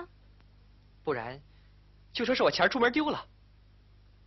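A young man speaks urgently.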